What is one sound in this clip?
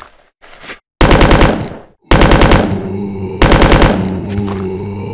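A handgun fires several loud shots in a row.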